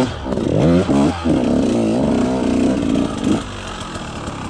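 A dirt bike engine revs loudly and roughly.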